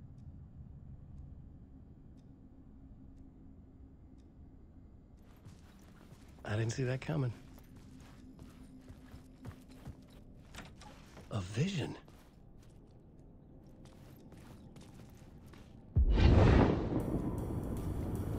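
Footsteps walk slowly across a floor.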